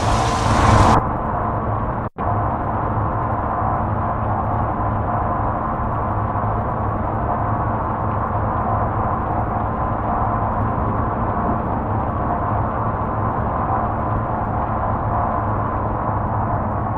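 Rain patters, muffled, on a truck cab.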